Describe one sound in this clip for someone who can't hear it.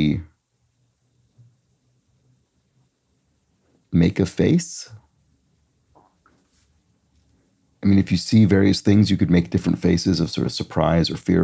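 A man talks calmly and close into a microphone, with pauses.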